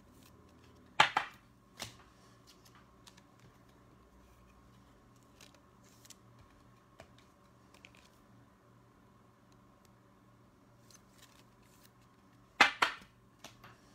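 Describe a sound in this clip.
Cards are laid down on a stack with a soft slap.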